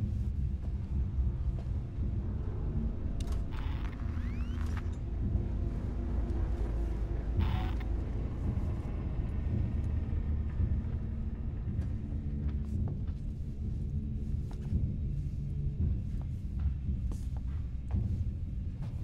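A low, steady mechanical hum drones throughout.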